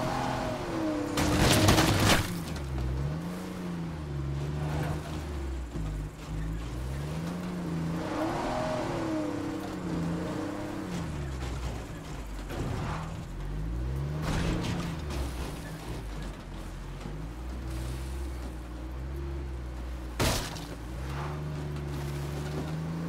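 Tyres crunch over rough dirt.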